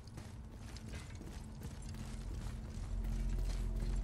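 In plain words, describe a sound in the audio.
A deep rumble swells as something heavy breaks up out of the ground.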